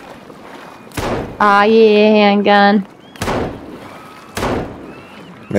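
A pistol fires sharp shots.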